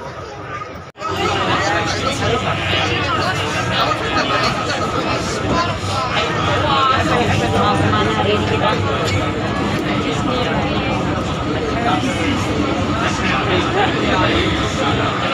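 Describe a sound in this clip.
Young women chat and laugh close by.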